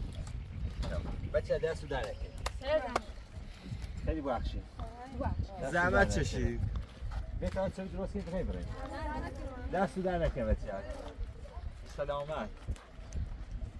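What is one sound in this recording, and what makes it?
Several boys talk and call out with animation nearby.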